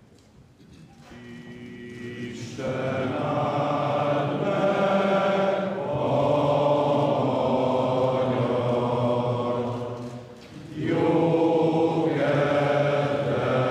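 A large crowd sings slowly together in an echoing hall.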